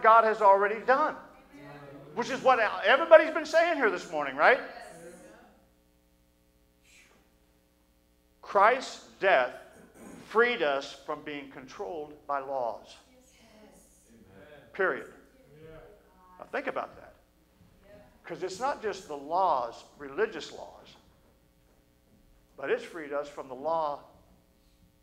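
A middle-aged man preaches through a microphone in an echoing hall, speaking with emphasis and pausing often.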